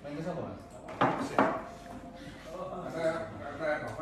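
Footsteps thud on the floor.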